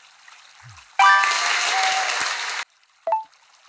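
A loud bright burst of celebration sound plays.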